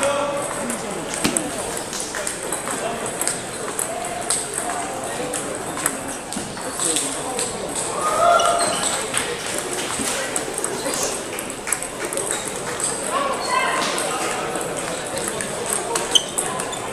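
Table tennis balls click off paddles in a large echoing hall.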